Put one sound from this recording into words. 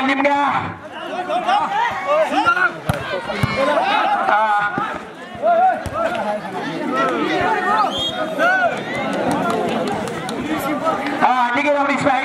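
A crowd cheers and shouts in the distance.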